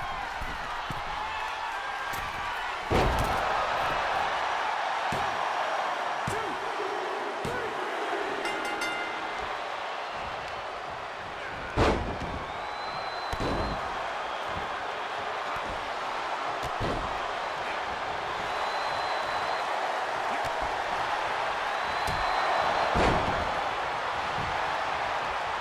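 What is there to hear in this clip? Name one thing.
A large crowd cheers steadily in an arena.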